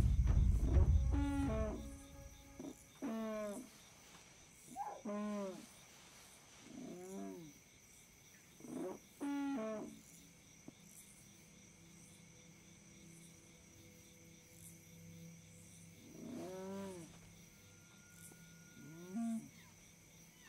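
A dog-like animal whines and yelps in short calls.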